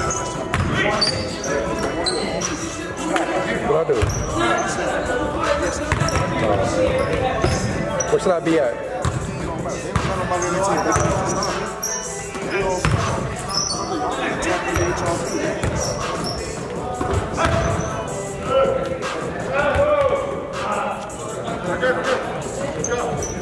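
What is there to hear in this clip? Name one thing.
A basketball bounces with hollow thuds in a large echoing gym.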